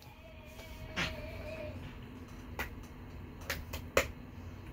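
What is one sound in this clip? A young man claps his hands sharply a few times.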